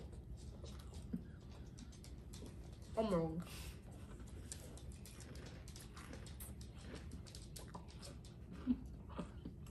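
Cereal crunches as someone chews.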